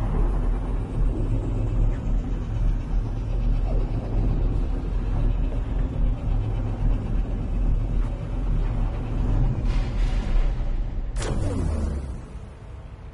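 A spaceship engine roars with a deep, steady rumble.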